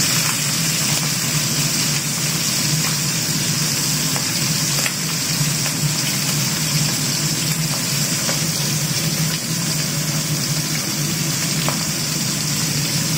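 Fish sizzles and crackles steadily in hot oil.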